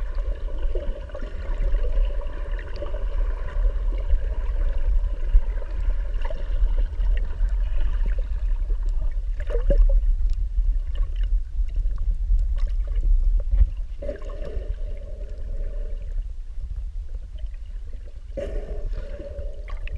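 Water rumbles and swishes, heard from underwater.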